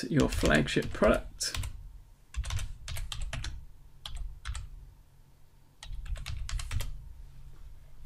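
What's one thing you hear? Keys clatter on a computer keyboard.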